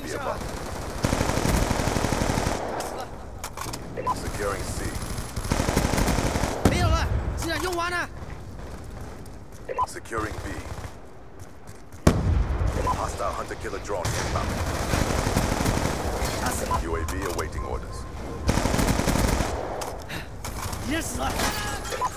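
Automatic gunfire rattles in rapid bursts.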